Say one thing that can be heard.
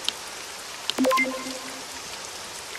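A short, bright video game chime rings out.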